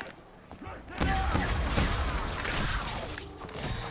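A ray gun fires with loud zapping blasts.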